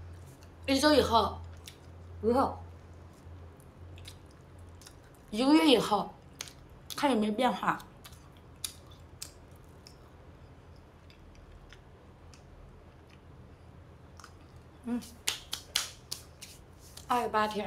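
A young woman chews food with soft smacking sounds.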